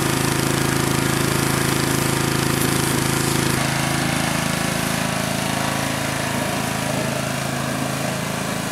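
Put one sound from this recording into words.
A pressure washer engine drones steadily.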